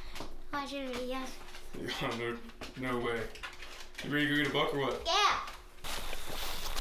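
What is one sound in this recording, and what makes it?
A young boy talks and laughs with animation close by.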